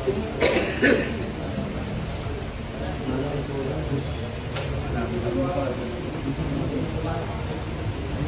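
A crowd of onlookers murmurs and chatters nearby.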